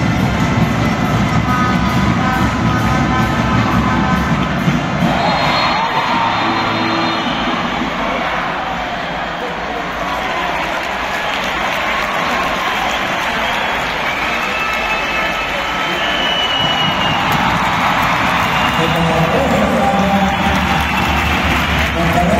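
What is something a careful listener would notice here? A large crowd cheers and chatters throughout a big echoing arena.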